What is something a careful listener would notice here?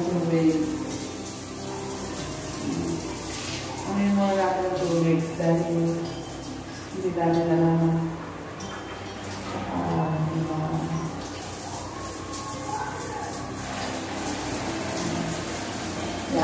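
A middle-aged woman talks with animation, close by.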